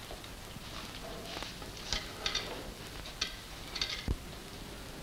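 A man speaks quietly to himself.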